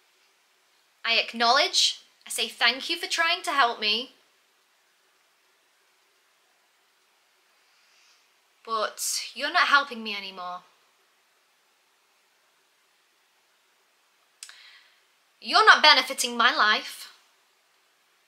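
A young woman speaks calmly close to the microphone, in short phrases with pauses.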